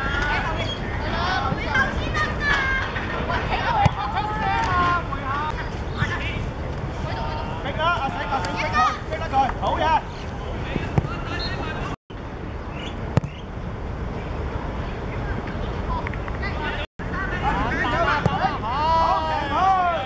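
Young boys shout to each other outdoors across an open field.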